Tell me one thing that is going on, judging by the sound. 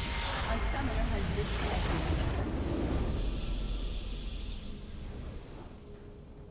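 A loud game explosion booms as a structure is destroyed.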